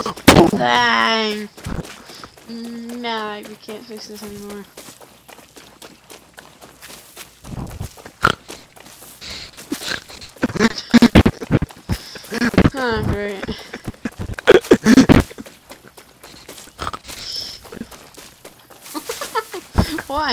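Footsteps tread through grass and over dirt.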